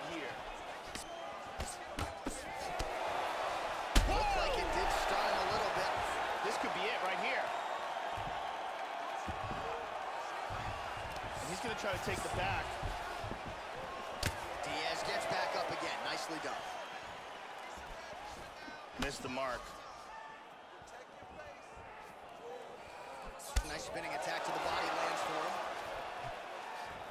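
A large crowd cheers and murmurs throughout.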